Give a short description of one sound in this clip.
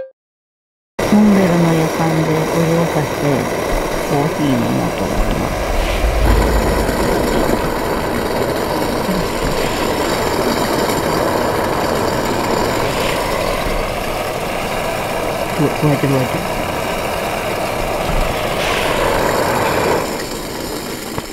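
A gas burner roars steadily under a kettle.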